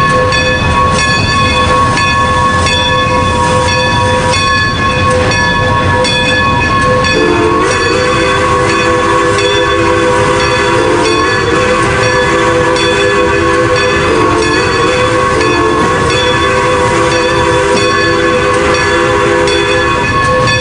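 Train wheels rumble and clack over the rails.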